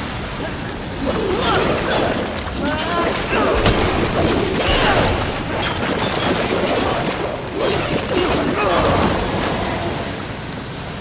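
Blades clash and strike in a fast fight.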